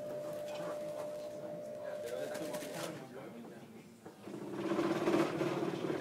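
Footsteps shuffle across a floor.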